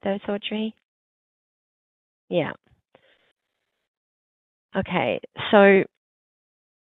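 A woman speaks calmly over an online call, in short phrases.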